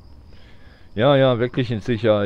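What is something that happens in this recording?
A man speaks in a shaken, hesitant voice.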